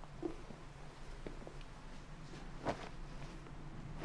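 Fabric robes rustle as a person sits down.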